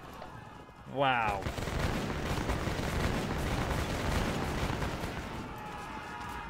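Gunfire and battle noise rumble in a steady roar.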